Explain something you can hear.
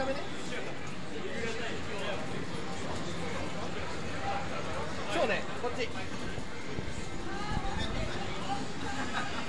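Several people chatter in a busy, noisy room.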